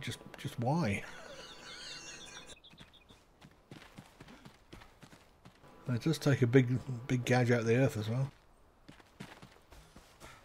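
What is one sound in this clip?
Footsteps run over dirt and grass.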